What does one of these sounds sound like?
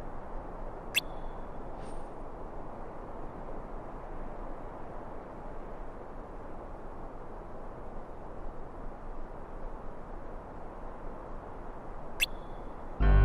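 A short, bright chime sounds twice.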